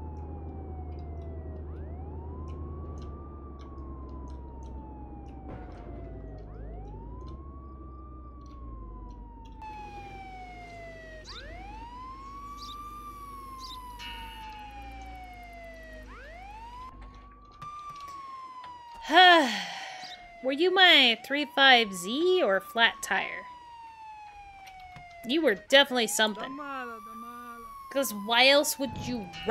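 A siren wails, rising and falling over and over.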